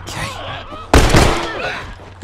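A pistol shot bangs loudly.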